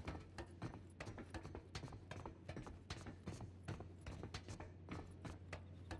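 Boots clank on metal ladder rungs in a steady climbing rhythm.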